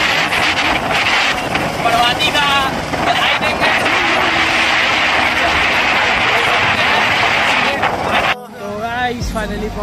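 A young man talks with animation close by, shouting over the wind.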